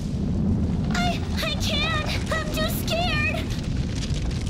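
A girl answers in a frightened voice.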